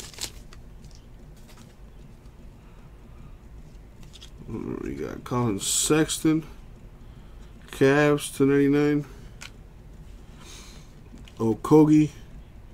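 Trading cards rustle and slide against each other close by.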